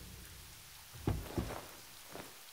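A car door opens with a thud.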